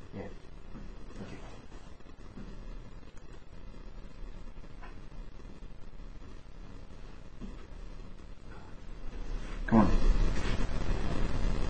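A man talks quietly nearby.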